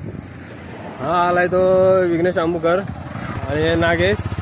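A motorcycle engine hums loudly close by.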